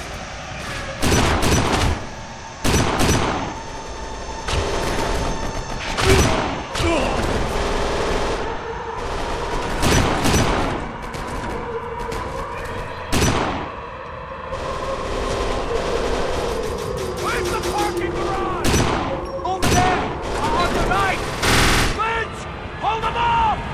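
Pistol shots crack in loud bursts.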